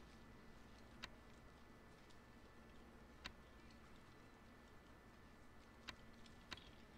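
Soft clicks tick now and then.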